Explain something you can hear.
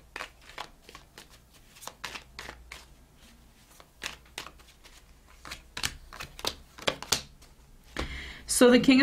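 Playing cards are shuffled with quick, crisp flicks.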